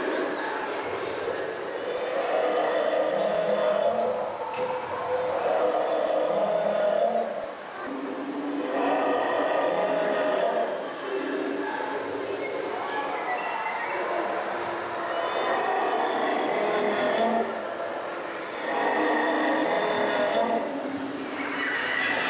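A large dinosaur model roars and growls in repeated bursts close by.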